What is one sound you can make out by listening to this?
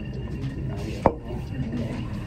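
Glassware clinks on a bench.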